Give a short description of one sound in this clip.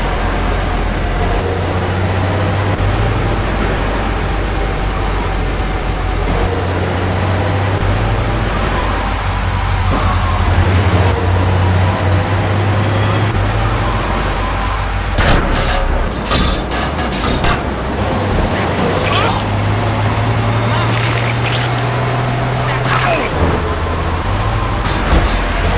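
A truck engine rumbles steadily as it drives along a road.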